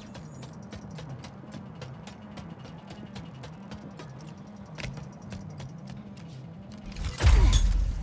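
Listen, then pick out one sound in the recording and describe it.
A game's music plays with a pulsing low bass line.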